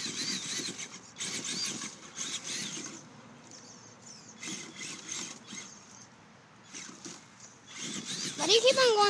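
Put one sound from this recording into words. A small electric motor whines in short bursts.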